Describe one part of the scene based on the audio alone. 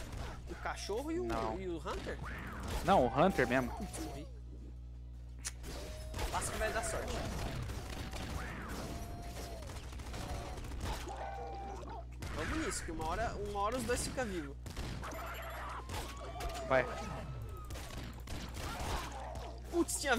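Video game gunfire pops and blasts rapidly.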